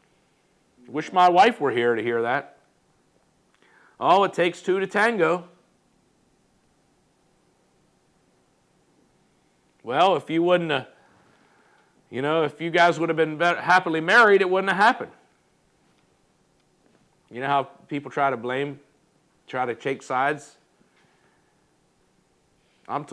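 A middle-aged man speaks calmly into a close microphone, in short bursts with pauses.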